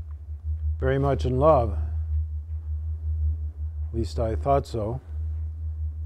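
An elderly man speaks.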